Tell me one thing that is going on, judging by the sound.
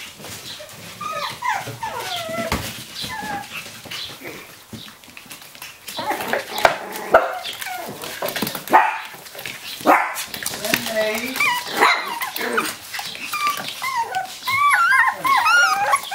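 Puppies whine and yelp.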